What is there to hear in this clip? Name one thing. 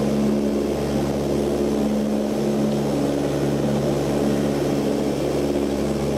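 A propeller engine drones loudly and steadily.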